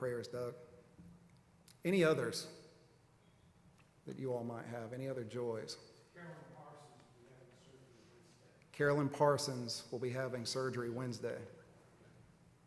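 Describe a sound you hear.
A man speaks calmly through a microphone in a large echoing hall, pausing between phrases.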